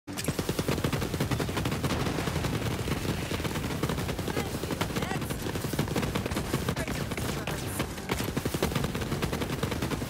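A rapid-fire gun shoots in quick bursts.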